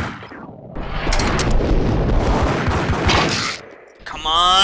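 Pistol shots ring out in a rapid burst.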